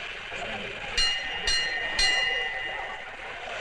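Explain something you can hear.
A hand bell rings three times, clanging brightly.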